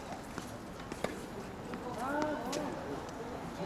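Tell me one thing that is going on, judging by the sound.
Tennis balls are struck with rackets in sharp, distant pops.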